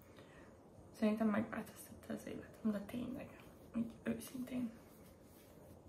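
A young woman speaks calmly and close by.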